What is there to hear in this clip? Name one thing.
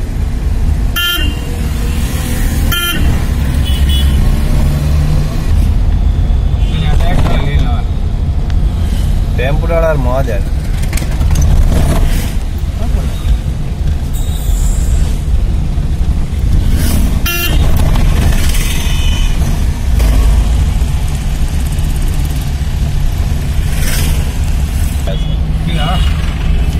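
Vehicle horns honk now and then in busy traffic nearby.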